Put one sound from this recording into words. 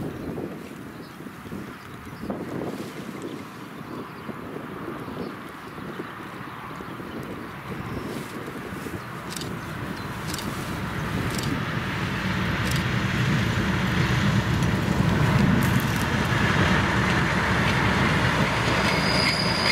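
A diesel locomotive rumbles closer, growing steadily louder.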